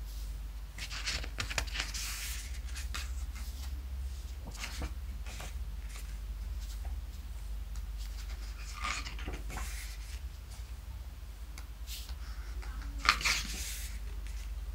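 Pages of a thick book turn with a soft swish and rustle.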